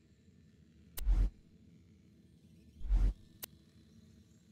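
Short sharp clicks come from a game menu.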